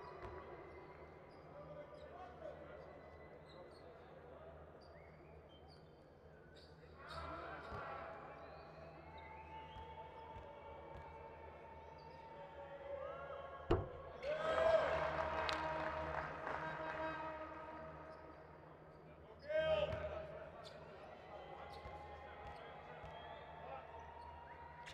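A large indoor crowd murmurs throughout, heard in a big echoing arena.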